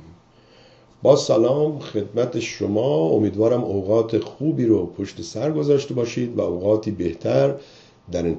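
An older man speaks calmly and clearly into a close microphone.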